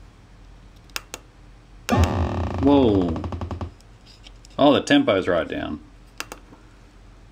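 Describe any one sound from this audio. A push button clicks.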